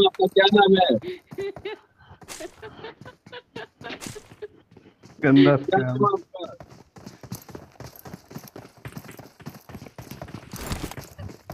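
Quick footsteps crunch on dirt and gravel.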